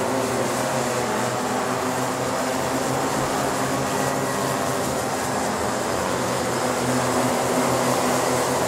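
Several kart engines buzz and whine loudly as they race past.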